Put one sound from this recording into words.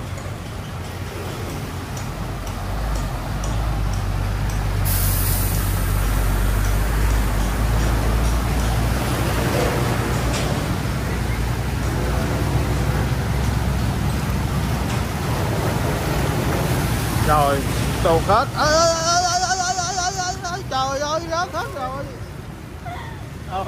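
Water splashes and swishes around moving wheels.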